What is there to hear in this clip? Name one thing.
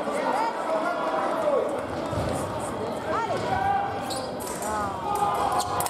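Fencers' shoes squeak on the piste.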